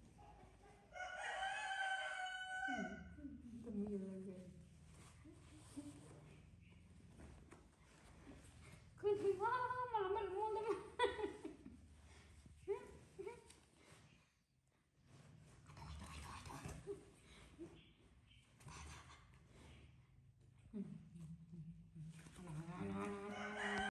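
A baby monkey squeals and cries up close.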